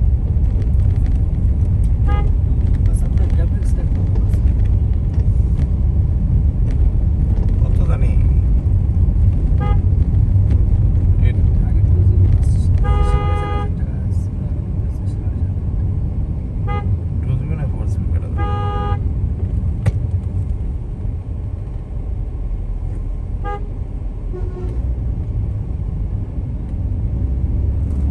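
A car engine rumbles steadily while driving along a road.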